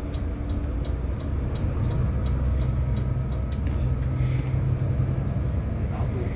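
A bus engine rumbles low and steady while driving.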